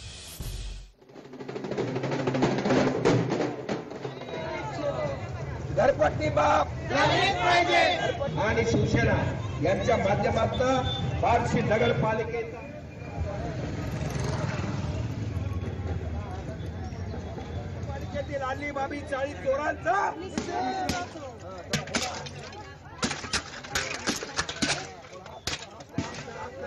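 A crowd of men chant slogans loudly outdoors.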